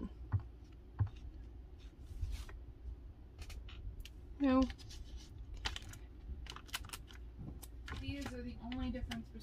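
Fingers press sticker letters onto a paper page with soft taps and rustles.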